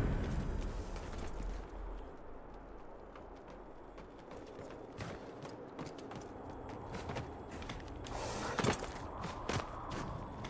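Footsteps thud on wooden planks.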